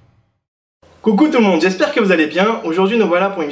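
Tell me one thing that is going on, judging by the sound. A man speaks cheerfully and close by, straight to the listener.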